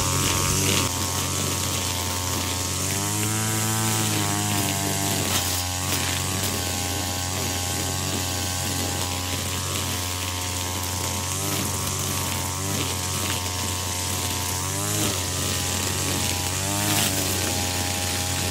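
Trimmer line whips and cuts through tall grass.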